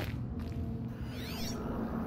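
Steam hisses out of a vent.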